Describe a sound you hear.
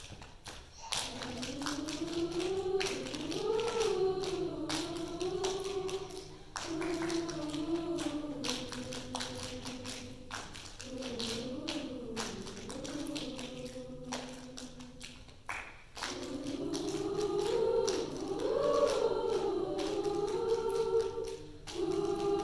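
A large choir sings together in an echoing hall.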